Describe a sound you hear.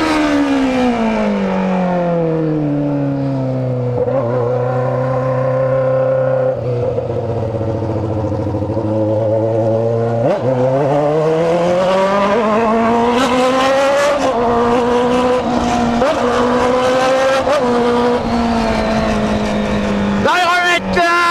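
A motorcycle engine hums close by, dropping in pitch as it slows and rising again as it speeds up.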